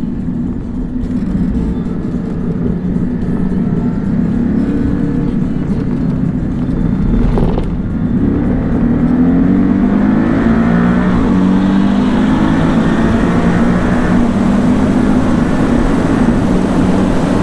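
A sports car engine roars steadily inside the cabin, dropping briefly at a gear change and then climbing in pitch.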